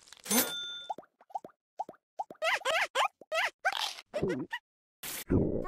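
A cartoon cat chirps in a squeaky voice.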